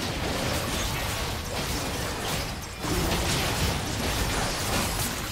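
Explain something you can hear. Magic blasts and weapon hits crackle and thud in a busy fight.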